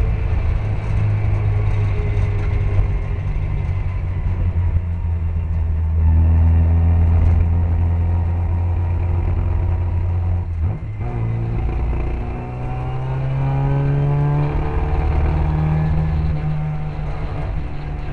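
A small racing car engine drones loudly up close, rising and falling in pitch as it shifts gears.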